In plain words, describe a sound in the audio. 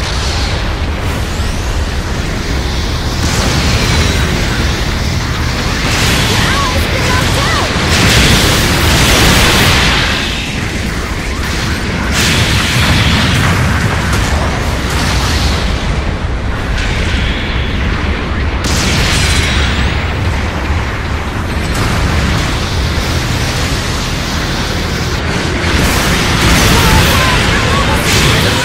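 Heavy robot thrusters roar steadily.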